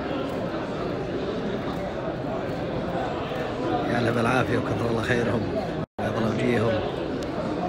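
A crowd of men murmurs and chatters in a large echoing hall.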